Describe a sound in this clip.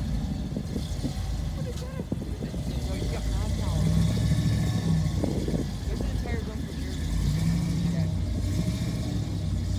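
A jeep engine rumbles and revs as it crawls over rock.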